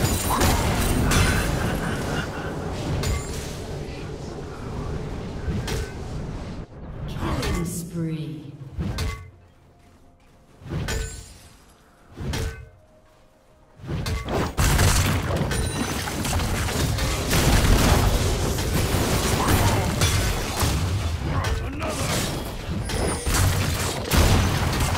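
Game battle effects clash and crackle in a busy fight.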